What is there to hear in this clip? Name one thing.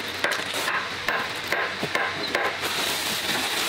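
Dry beans rattle and patter as they are scooped from a plastic sack.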